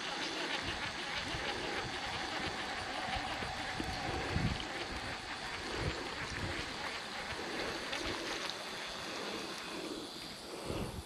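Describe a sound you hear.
A fishing reel whirs steadily as line is wound in.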